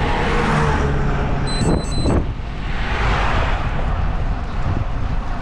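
Another car drives past close by and fades.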